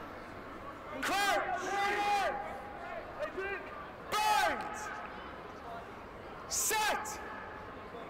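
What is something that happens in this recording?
Young male players shout loudly to each other outdoors.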